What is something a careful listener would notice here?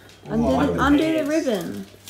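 Plastic wrapping crinkles as a young man handles a gift.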